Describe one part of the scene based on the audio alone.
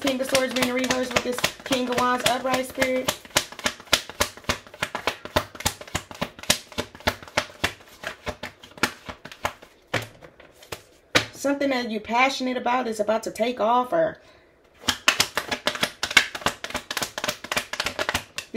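Playing cards are shuffled with quick, rapid riffling clicks.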